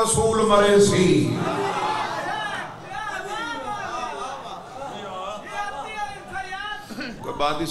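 A young man speaks passionately into a microphone, heard through a loudspeaker.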